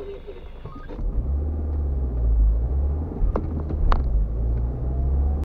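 A car engine revs up as the car pulls away and drives off.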